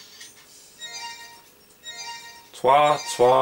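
Short electronic chimes ring in quick succession.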